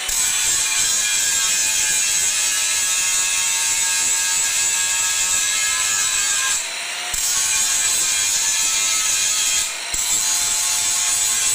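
An angle grinder grinds loudly against metal with a harsh, high whine.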